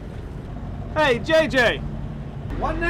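A man speaks up close outdoors.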